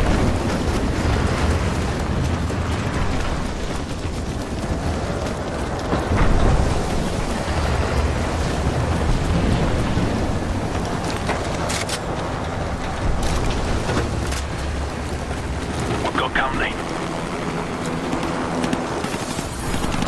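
Heavy rain and wind roar steadily outdoors.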